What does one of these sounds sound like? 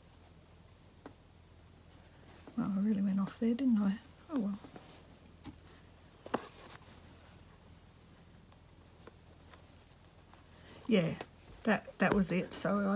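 Fabric rustles softly as hands handle it.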